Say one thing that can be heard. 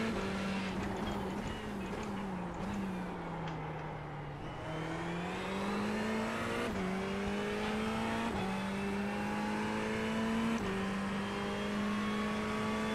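A race car engine drones, dropping in pitch while braking and rising as it speeds up through the gears.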